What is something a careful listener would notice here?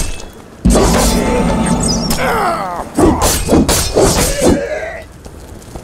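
A sword slashes through the air with loud whooshing swipes.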